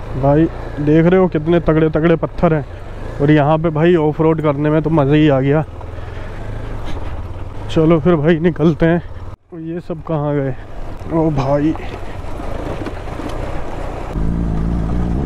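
A motorcycle engine idles with a low, steady rumble.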